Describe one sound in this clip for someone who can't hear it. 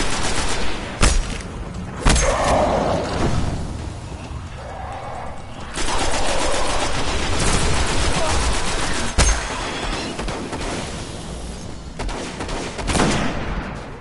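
A rifle fires sharp, booming shots in bursts.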